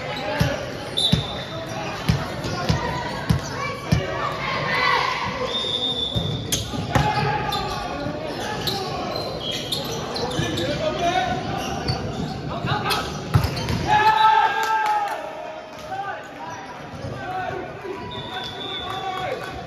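Players' shoes squeak on a wooden floor.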